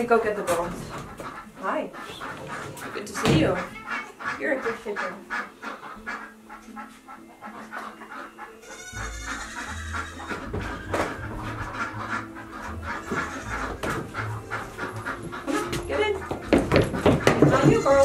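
A woman talks softly to the animals.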